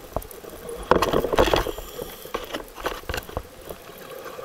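Muffled knocks and bumps sound close by underwater.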